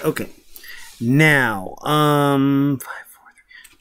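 A man sings in a drawn-out, wavering voice.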